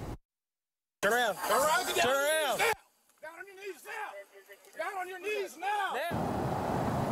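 A man shouts commands loudly, close to the microphone.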